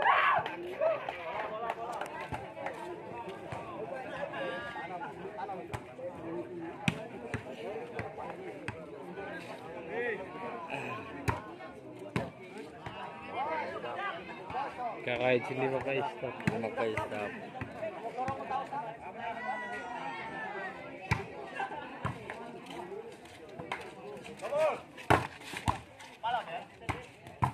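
A volleyball is struck by hand.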